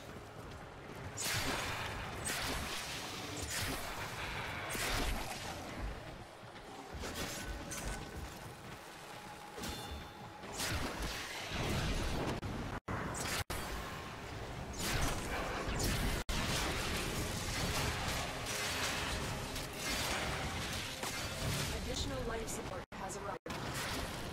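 Blasts boom and burst.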